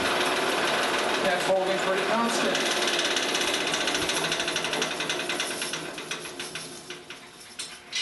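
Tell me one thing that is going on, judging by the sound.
An electric motor whirs and slowly winds down.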